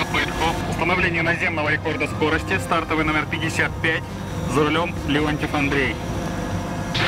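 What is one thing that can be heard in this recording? A man speaks into a two-way radio up close, calmly.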